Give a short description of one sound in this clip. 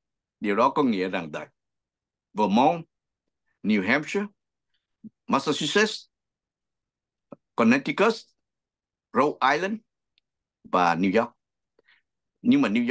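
A middle-aged man speaks with animation over an online call, in short bursts with pauses.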